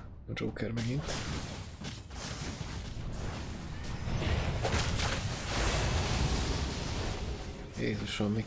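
Game spells and attacks clash and crackle in a busy fight.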